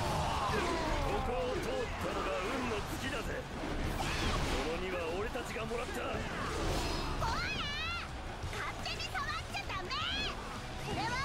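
Swords clash and strike again and again in a noisy battle.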